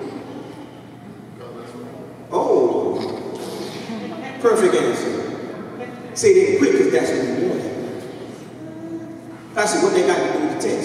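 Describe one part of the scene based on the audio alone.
A man preaches forcefully into a microphone over loudspeakers in an echoing hall.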